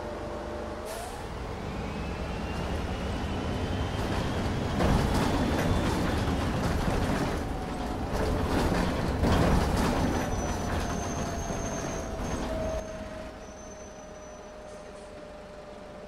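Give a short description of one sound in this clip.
A bus engine revs up with a rising whine as the bus pulls away.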